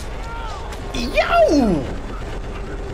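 A young man screams in fright.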